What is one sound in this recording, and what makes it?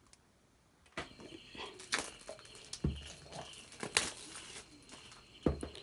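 Plastic wrapping crinkles as hands pull it off.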